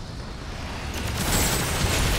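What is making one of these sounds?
Energy blasts crackle and hiss loudly.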